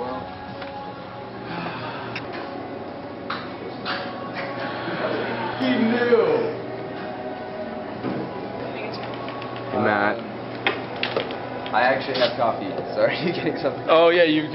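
A low steady hum of a busy room carries in the background.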